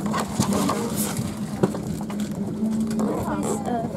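Glossy paper pages rustle as a magazine is leafed through.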